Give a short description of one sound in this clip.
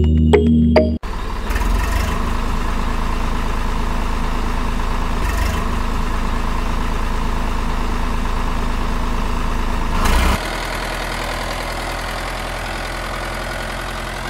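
A small electric motor whirs steadily as a toy tractor drives along.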